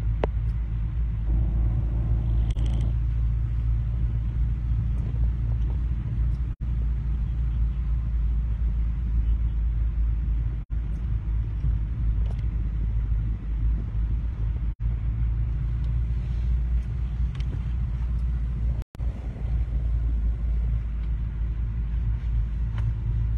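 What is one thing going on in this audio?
A car engine rumbles steadily from inside the cabin as it drives along.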